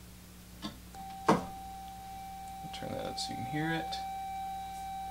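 A steady electronic test tone hums.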